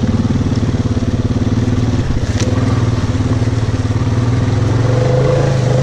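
Tyres squelch and splash through mud and puddles.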